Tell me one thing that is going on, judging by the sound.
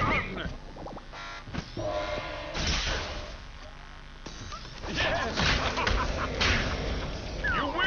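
Game fighters clash with punchy impact effects.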